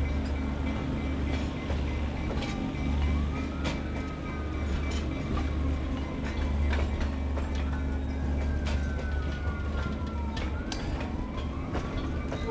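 Train wheels squeal shrilly against the rails.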